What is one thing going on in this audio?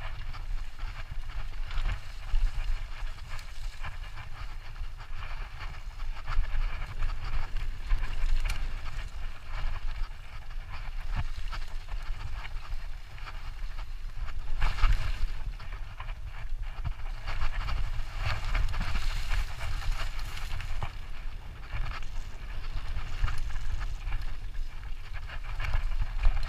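Wind rumbles and buffets against a microphone.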